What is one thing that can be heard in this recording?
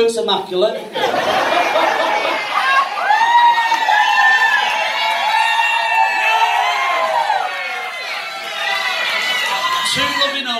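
A group of men and women laughs loudly.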